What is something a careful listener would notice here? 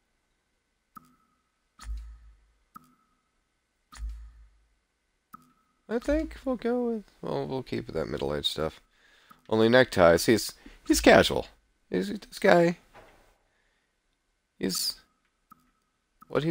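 Short soft menu clicks sound now and then.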